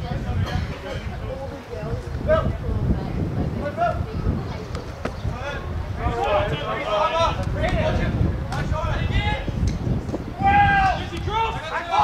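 Young men shout and call to each other across a playing field.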